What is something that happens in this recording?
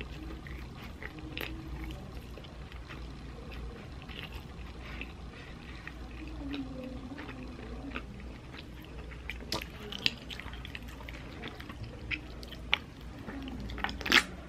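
A person chews food loudly and wetly close to the microphone.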